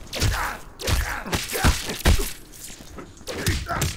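Electric zaps crackle in a fighting game.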